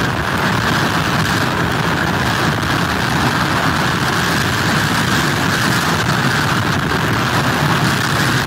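Strong wind blows steadily outdoors.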